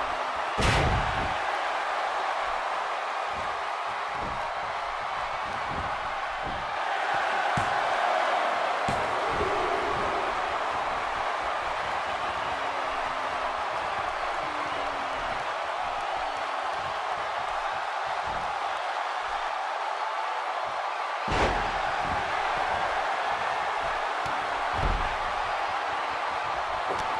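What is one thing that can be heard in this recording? A large crowd cheers steadily in an echoing arena.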